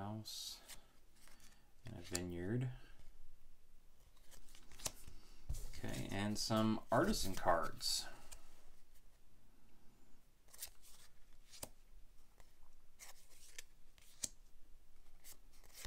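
Playing cards rustle and tap softly as they are handled close by.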